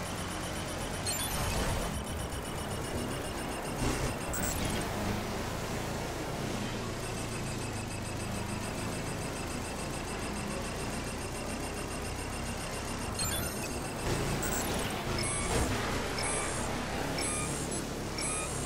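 Short game chimes ring out now and then.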